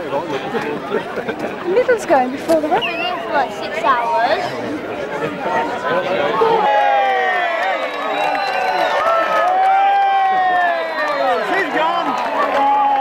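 A crowd of adults talks nearby outdoors.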